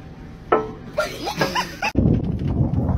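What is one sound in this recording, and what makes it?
A young girl squeals with excitement.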